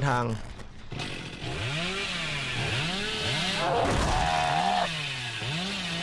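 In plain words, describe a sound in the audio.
A chainsaw revs up and down.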